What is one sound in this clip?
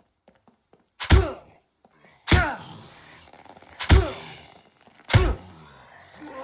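A wooden bat thuds heavily into a body several times.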